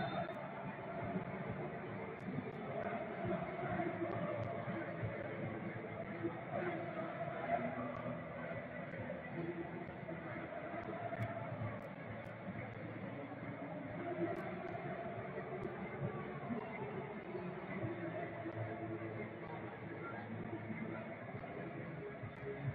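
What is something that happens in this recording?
A large stadium crowd chants and sings steadily.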